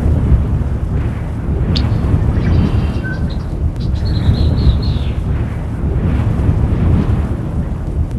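Heavy hooves tramp steadily through snow.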